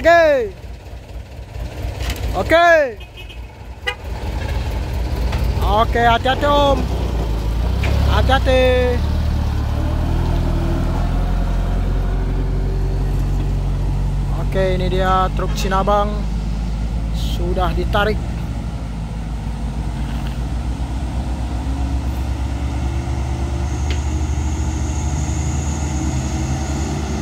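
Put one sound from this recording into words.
A heavy diesel truck engine rumbles and strains close by.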